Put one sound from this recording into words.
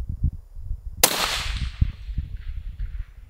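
A rifle fires a single loud shot that rings out and fades.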